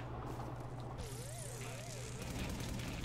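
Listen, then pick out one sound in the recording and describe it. A siren wails in quick rising and falling sweeps.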